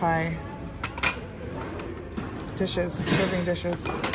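A ceramic bowl knocks against a metal wire cart.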